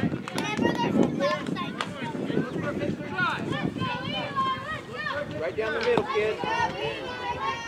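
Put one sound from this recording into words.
Young boys shout and call out across an open outdoor field.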